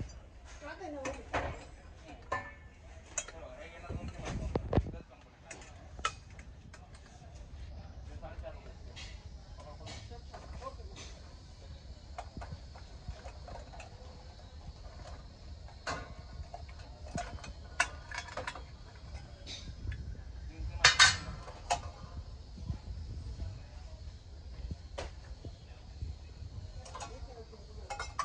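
Brass utensils clink and clatter as they are handled.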